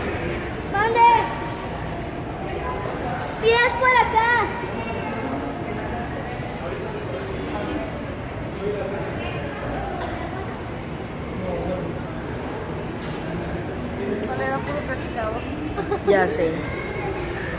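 A young woman nearby shouts and cheers excitedly in short high bursts.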